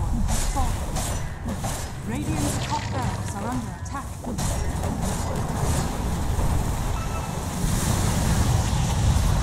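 Magic beams zap and crash into a tower.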